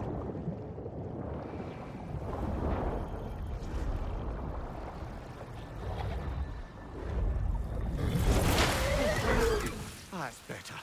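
Water churns and bubbles in a deep, muffled rumble.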